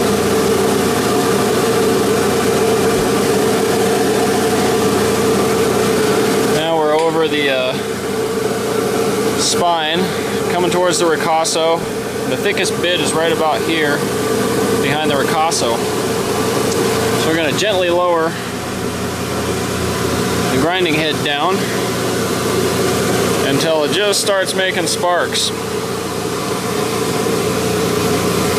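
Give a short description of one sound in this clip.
A grinding machine hums steadily and loudly.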